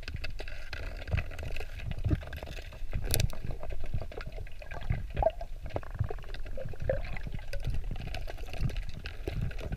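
A diver's movements stir the water with a muffled underwater rumble and soft knocks.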